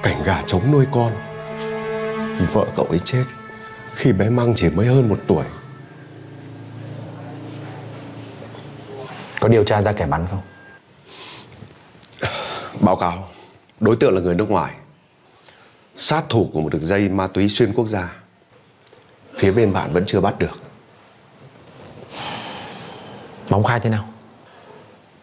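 A middle-aged man speaks slowly and with emotion, close by.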